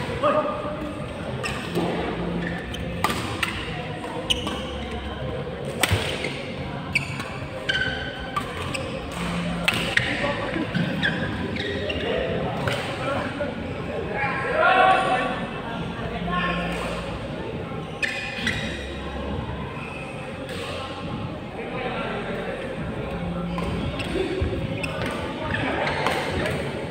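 Shuttlecocks are hit with sharp racket pops, echoing in a large hall.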